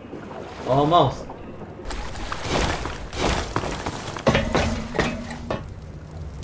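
Footsteps crunch over loose gravel and rubble.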